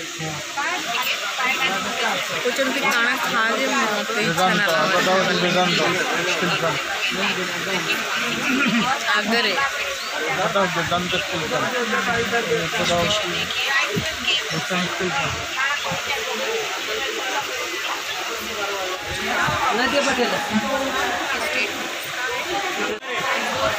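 A young woman talks close to the microphone with animation.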